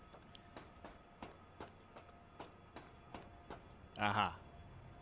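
Footsteps clang on metal ladder rungs in a quick, even rhythm.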